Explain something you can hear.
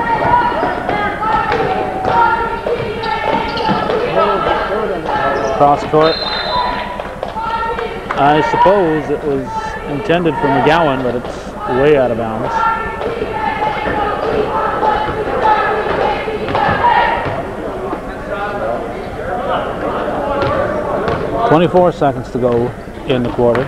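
A crowd of spectators talks and calls out in an echoing gym.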